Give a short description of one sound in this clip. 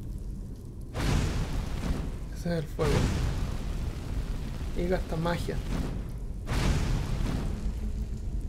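A blade swooshes through the air.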